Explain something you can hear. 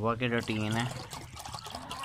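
Water pours from a plastic bottle into a metal bowl.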